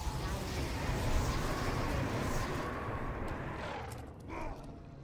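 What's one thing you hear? Flames roar and crackle from a fire spell.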